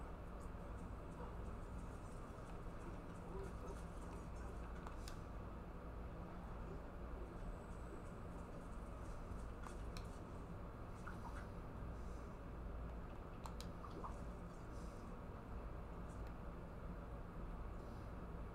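Video game sounds play quietly from a television.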